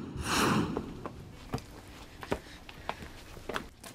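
Children's footsteps scuff on a stone path.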